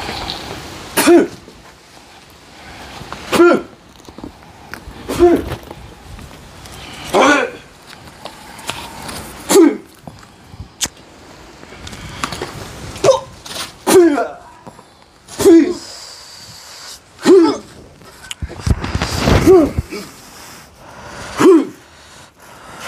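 A young man shouts in short, sharp bursts, close by.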